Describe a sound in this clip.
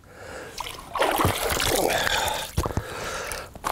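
Water splashes as a fish thrashes at the surface close by.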